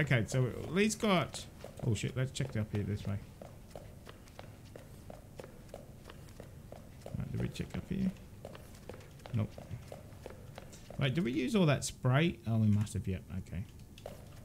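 Footsteps tread on a hard floor and stairs.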